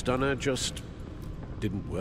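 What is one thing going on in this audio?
An older man asks a question calmly.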